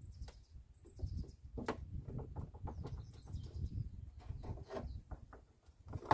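A metal bar scrapes and knocks against a car's headlight housing.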